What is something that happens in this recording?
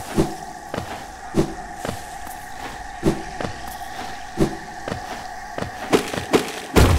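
Small footsteps patter and thud softly on stone.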